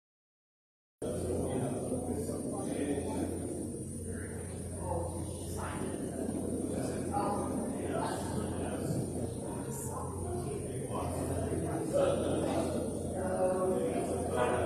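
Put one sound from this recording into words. A person speaks far off in a large echoing hall.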